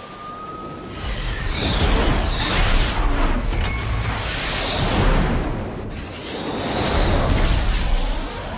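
A jet aircraft roars overhead.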